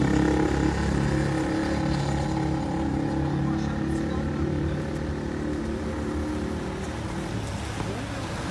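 Men talk at a distance outdoors.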